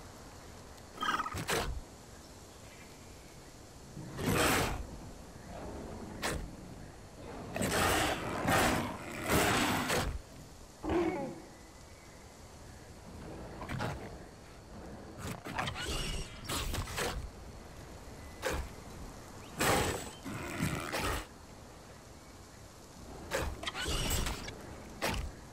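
Footsteps rustle over dirt and through grass in short bursts.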